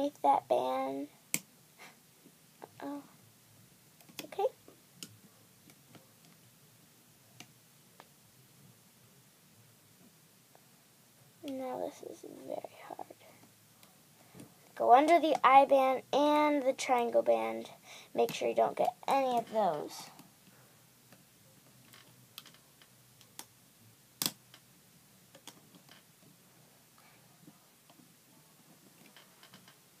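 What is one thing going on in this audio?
Rubber bands stretch and snap softly against a plastic loom.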